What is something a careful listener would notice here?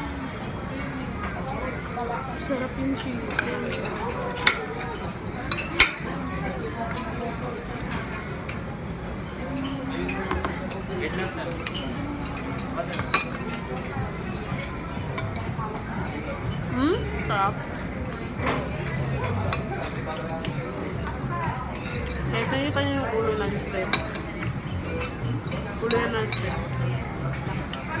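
Metal utensils clink against plates.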